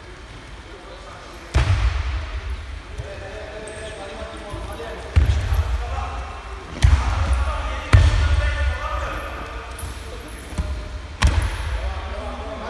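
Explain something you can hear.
Young men call out and talk in the background.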